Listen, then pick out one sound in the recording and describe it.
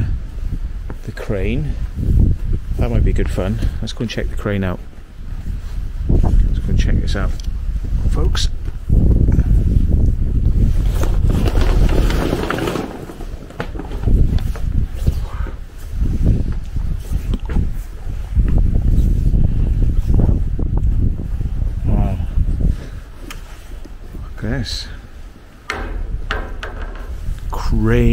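Wind buffets and rumbles loudly outdoors.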